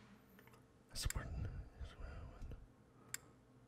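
A game menu page turns with a soft rustle.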